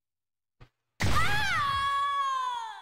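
A loud, drawn-out scream sounds and slowly fades.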